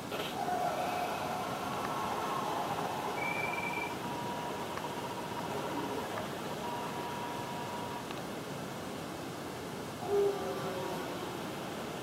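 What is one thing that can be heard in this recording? A video game's crowd roars steadily through a television speaker.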